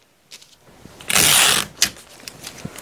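Masking tape tears with a short ripping sound.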